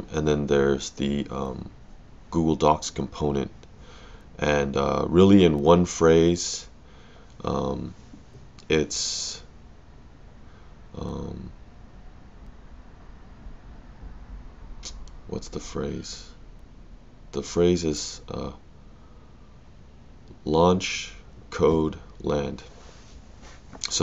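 A man talks calmly and close to a microphone, with pauses.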